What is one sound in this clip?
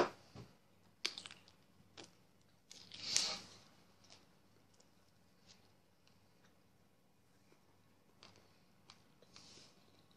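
A man chews food with soft smacking sounds.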